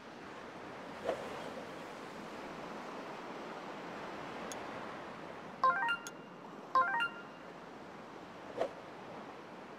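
A golf club swings and strikes a ball with a sharp crack.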